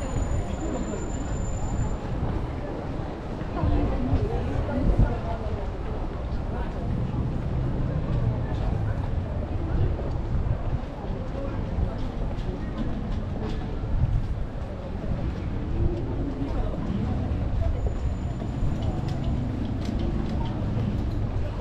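Outdoors, a steady low rumble of wind and street noise fills the air.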